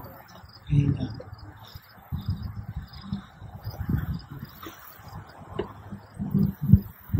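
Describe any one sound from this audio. An elderly man speaks calmly into a microphone outdoors.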